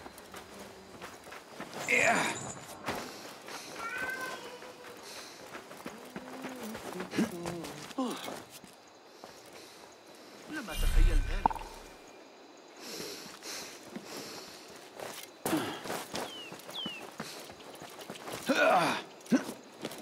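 Hands and feet scrape on stone and wood while climbing.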